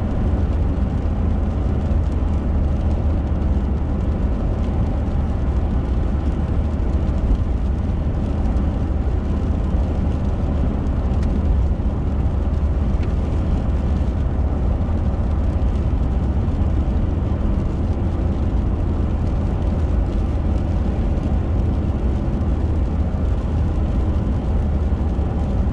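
A car engine and tyres rumble steadily on a wet road.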